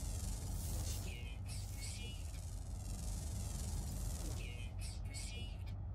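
Electronic chirps beep in quick bursts.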